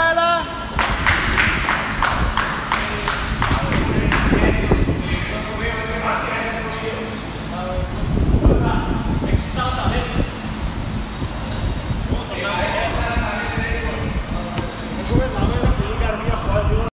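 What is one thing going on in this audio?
Several men talk and call out nearby in a large echoing hall.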